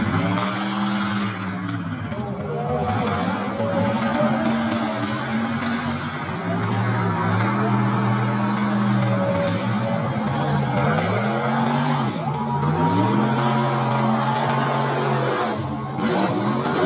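Big truck engines roar and rev up and down close by.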